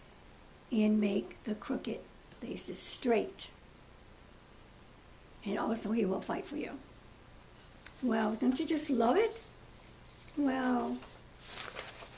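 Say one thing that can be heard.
An elderly woman speaks calmly, close by, in short phrases with pauses.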